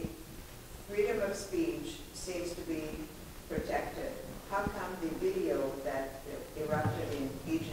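An elderly woman speaks calmly at a distance, without a microphone.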